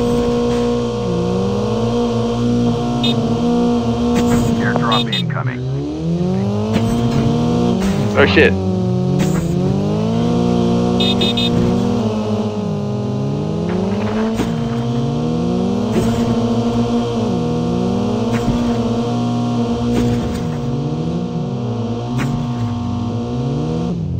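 A car engine hums steadily and revs up and down as the car drives.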